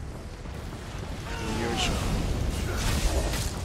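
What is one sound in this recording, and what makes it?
Blades clash in a fight.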